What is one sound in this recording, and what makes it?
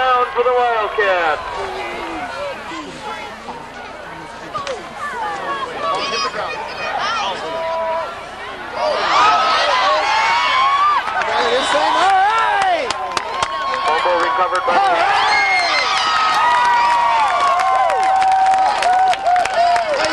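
A large crowd cheers and shouts outdoors, growing louder.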